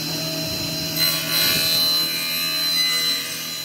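A table saw blade whines as it cuts through wood.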